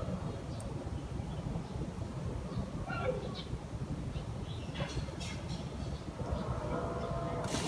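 Hands pat and press loose soil in a pot.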